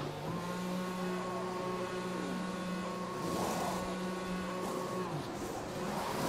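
A racing car engine hums steadily at low speed, then cuts off.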